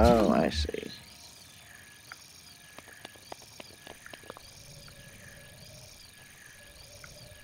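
A shimmering magical hum swells and fades in a steady, repeating pulse.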